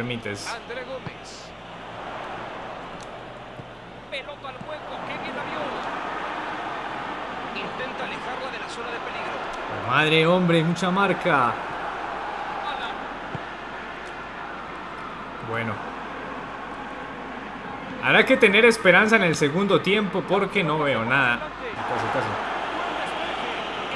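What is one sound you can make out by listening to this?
A football crowd murmurs and cheers steadily in the background.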